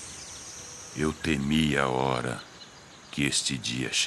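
A man speaks with a deep, animated voice close by.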